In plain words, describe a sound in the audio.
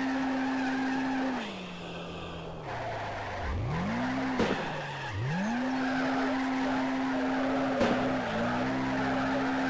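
A car engine revs high, drops and climbs again as gears shift.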